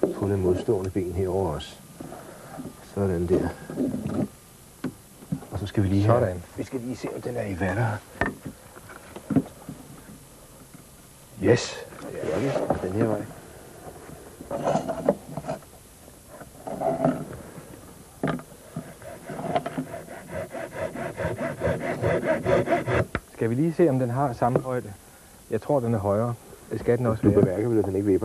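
A middle-aged man talks calmly into a clip-on microphone, close by.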